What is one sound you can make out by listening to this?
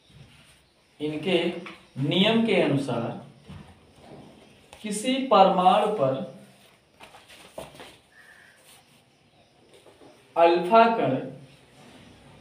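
A young man speaks calmly in short phrases with pauses, close by.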